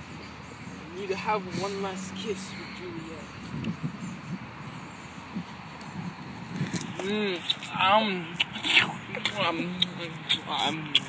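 A teenage boy talks playfully close by.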